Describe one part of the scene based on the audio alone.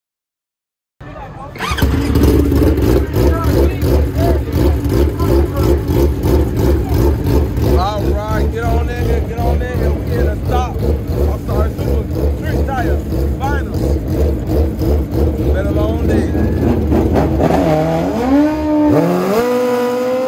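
A motorcycle engine idles loudly and revs in bursts.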